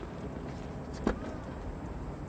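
A car's rear hatch clicks open.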